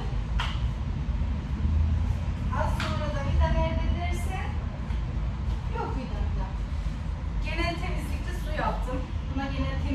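A woman's footsteps tap on a hard floor.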